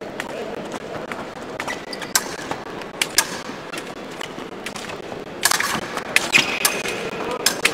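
Fencing blades clash and click against each other.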